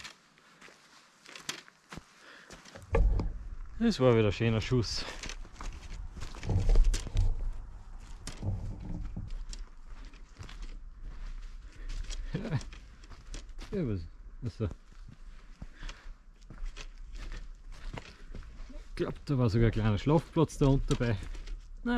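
Footsteps crunch on leaves and twigs.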